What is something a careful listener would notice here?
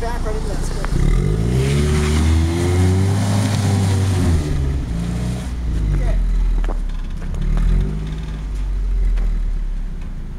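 Car tyres spin and whine on snow.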